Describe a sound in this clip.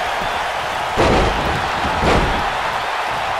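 Heavy thuds sound as bodies slam onto a wrestling mat.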